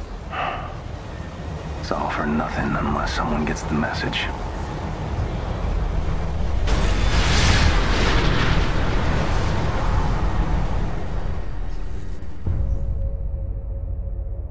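A huge fireball roars loudly.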